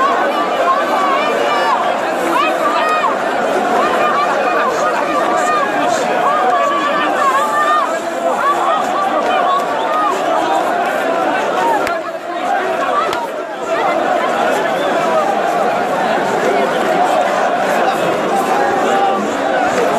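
Many men and women shout and whistle in a dense crowd close by.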